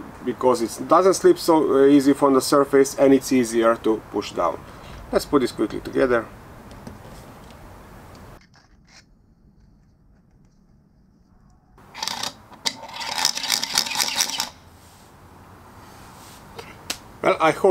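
A man talks calmly and clearly, close by.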